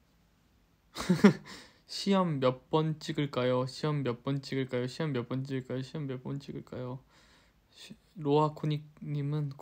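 A young man talks close to a phone microphone, calmly and with animation.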